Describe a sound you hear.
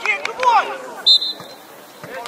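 A referee's whistle gives a short blast.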